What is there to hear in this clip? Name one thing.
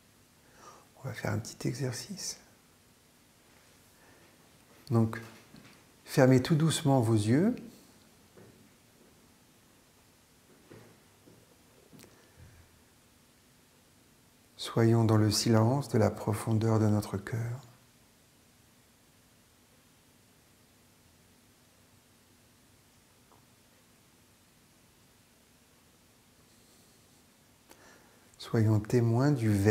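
An older man speaks calmly and close by, with long pauses.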